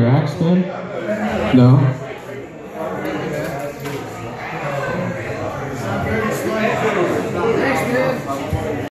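An upright bass is plucked.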